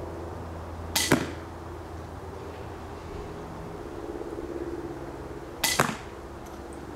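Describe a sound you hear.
Arrows strike a foam target with sharp thuds.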